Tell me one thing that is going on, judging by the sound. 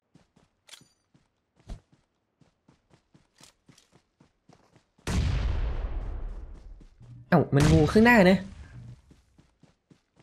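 Footsteps rustle through tall grass at a steady pace.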